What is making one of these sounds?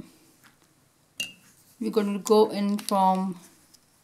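A small plastic pen cap taps down onto paper.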